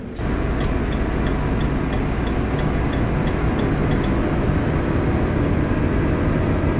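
Tyres hum on the road.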